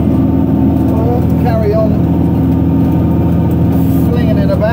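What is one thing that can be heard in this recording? A man talks calmly close to the microphone over the engine noise.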